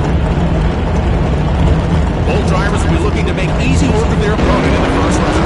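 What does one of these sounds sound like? A race car engine idles with a deep, rumbling burble.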